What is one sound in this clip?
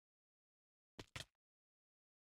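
A body hits the ground with a heavy thud.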